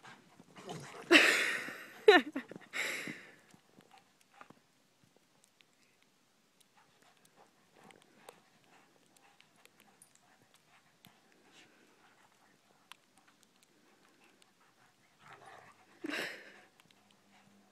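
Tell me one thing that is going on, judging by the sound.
A dog barks loudly in short bursts.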